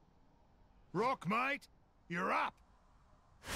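A man calls out loudly.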